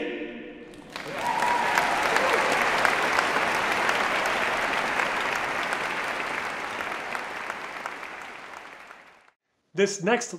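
An audience applauds loudly and the applause slowly fades.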